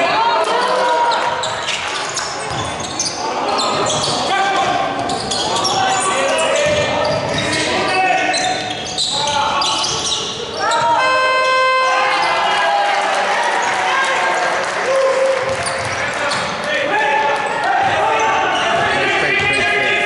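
Sneakers squeak on a hardwood court in an echoing hall.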